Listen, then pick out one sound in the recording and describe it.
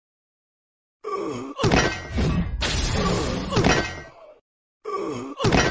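Video game combat sound effects play.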